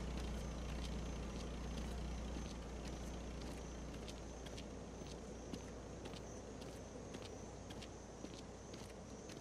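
Footsteps scuff slowly on a paved road.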